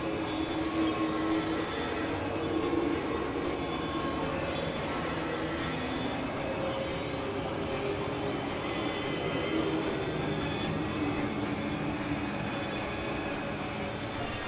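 An electronic keyboard plays a slow melody.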